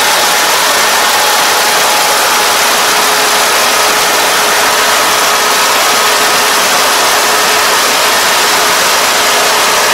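A combine harvester engine drones steadily close by.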